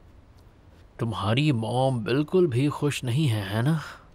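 A young man speaks nearby in a low, tense voice.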